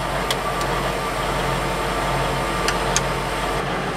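A push button clicks.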